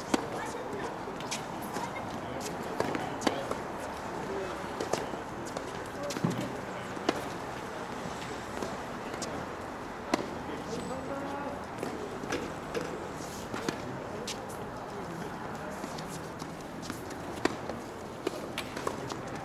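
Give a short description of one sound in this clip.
Tennis shoes scuff and patter on a hard court.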